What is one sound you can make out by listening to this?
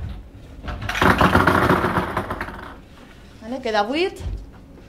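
Wooden balls rattle and tumble inside a box.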